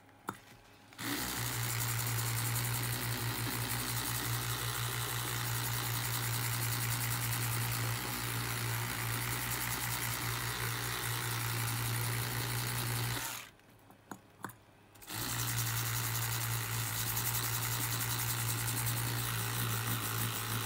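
An electric toothbrush buzzes steadily against a circuit board, stopping once briefly.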